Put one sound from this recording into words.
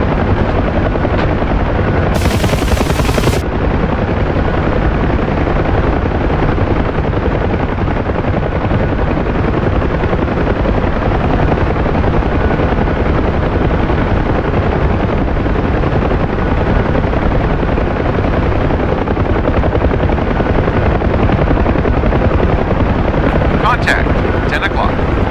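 Helicopter rotor blades thump loudly and steadily from inside the cabin.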